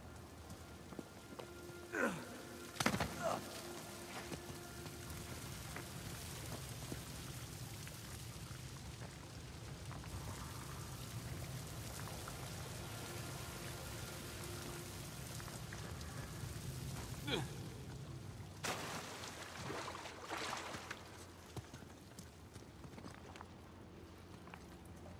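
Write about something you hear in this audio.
A man's footsteps scrape and crunch on rock.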